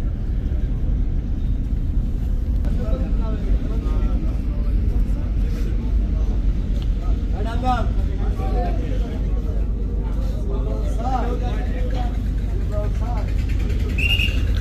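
A ship's engine rumbles low and steady throughout.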